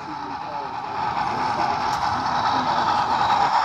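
A small model train rumbles along its track, growing louder as it draws near.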